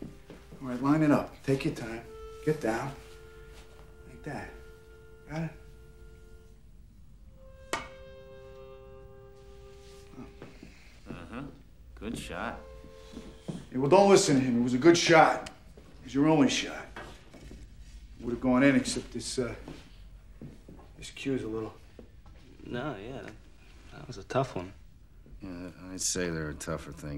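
Men talk calmly nearby.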